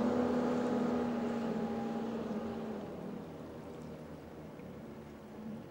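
Traffic rumbles across a high bridge in the distance, with a steady engine drone that slowly fades.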